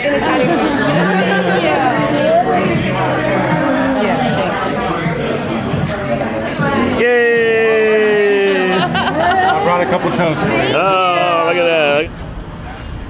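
Several people chatter at a table nearby.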